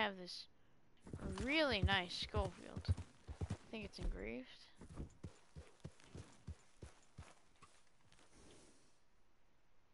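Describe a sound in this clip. A horse gallops, its hooves thudding over grass.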